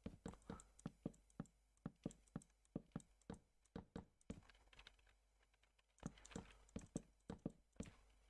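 Wooden blocks knock dully as they are placed one after another in quick succession.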